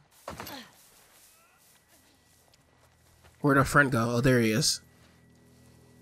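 Tall grass rustles as someone creeps through it.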